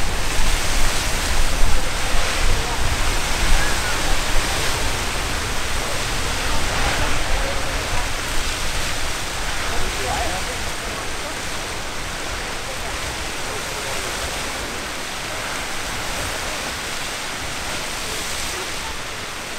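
A geyser roars and hisses as water jets high into the air.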